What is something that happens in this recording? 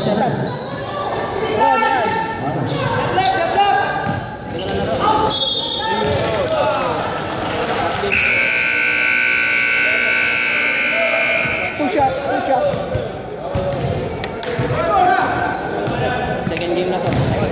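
Men shout and call out across an echoing hall.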